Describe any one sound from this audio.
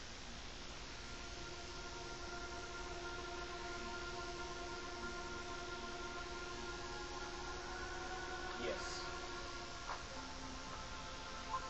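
Game music plays through a television speaker with steady, sustained notes.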